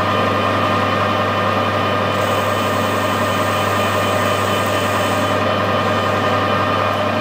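A cutting tool scrapes and whines against turning metal.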